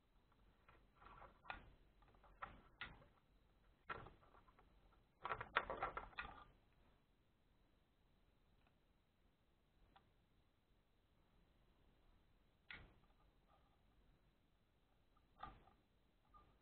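A small metal part clicks and rattles in a hand.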